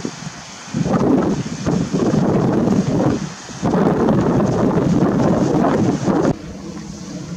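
Strong wind gusts roar across open water.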